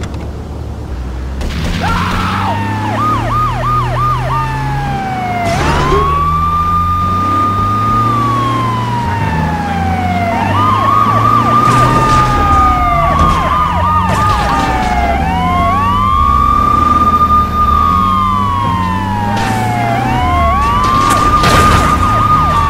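A heavy van engine roars steadily.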